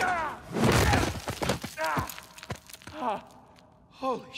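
A man groans and gasps in pain close by.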